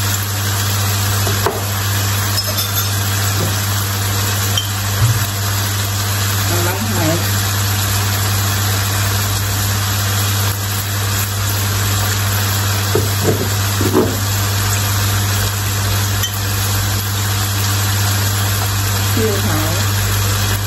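Food sizzles steadily in a hot frying pan.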